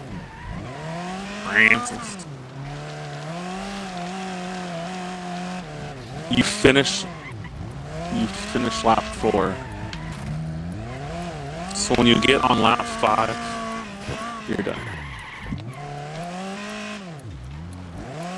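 Car tyres skid and crunch over gravel.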